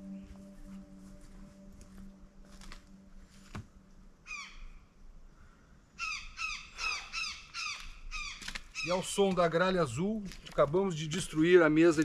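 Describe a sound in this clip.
Footsteps crunch on dry twigs and needles.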